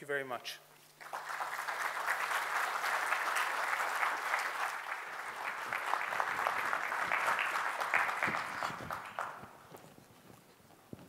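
An audience applauds loudly, then the applause fades.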